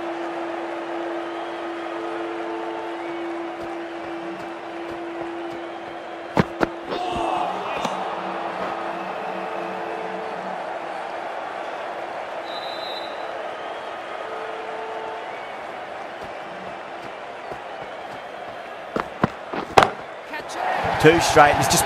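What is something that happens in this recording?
A stadium crowd murmurs steadily in the background.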